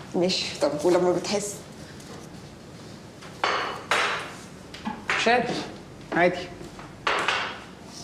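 Dishes clatter onto a glass table.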